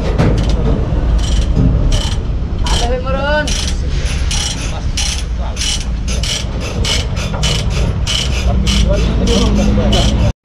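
Metal tools clank and tap against a truck wheel.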